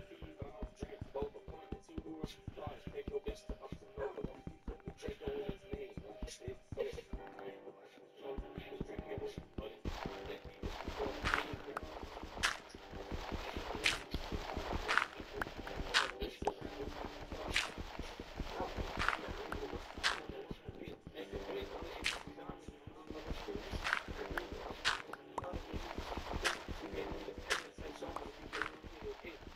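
Dirt crunches in rapid, repeated scrapes as it is dug away.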